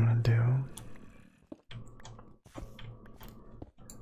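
A pickaxe chips at stone with short knocks.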